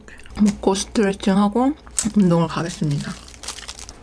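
A plastic wrapper crinkles as hands handle it.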